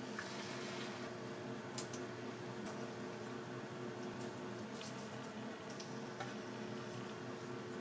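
Egg batter sizzles in a hot frying pan.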